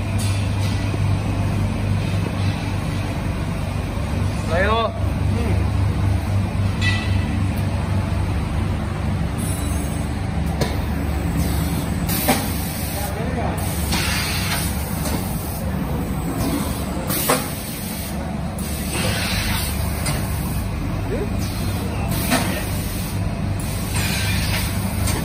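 A packing machine hums steadily in a large echoing hall.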